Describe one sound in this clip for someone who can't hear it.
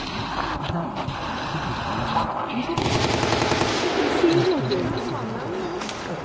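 A crowd of spectators murmurs and talks nearby.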